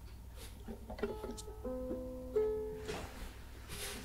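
Ukulele strings are plucked softly.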